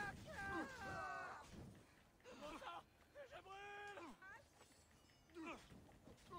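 Blows strike and clash in a fight.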